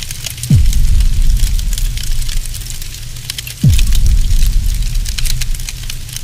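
Flames crackle and pop.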